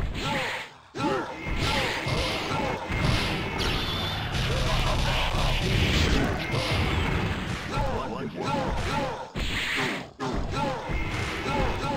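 Punches and blows land with sharp impact sounds in rapid succession.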